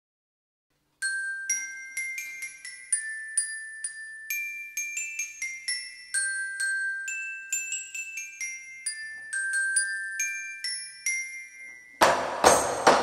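A glockenspiel plays a bright melody.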